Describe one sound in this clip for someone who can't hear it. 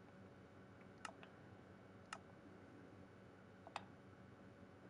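Short game menu clicks tick now and then.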